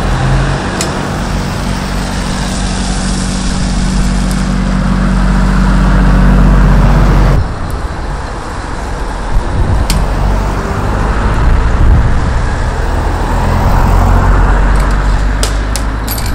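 A heavy diesel rotator truck engine runs.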